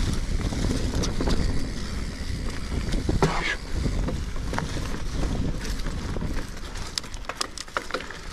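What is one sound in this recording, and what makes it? A bicycle rattles and clicks over bumps.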